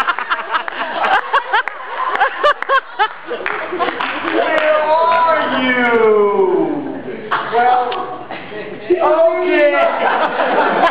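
A man raps loudly into a microphone through loudspeakers.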